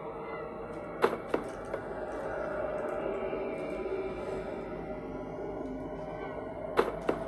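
A cardboard box thuds down.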